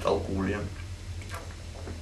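A man swallows from a bottle.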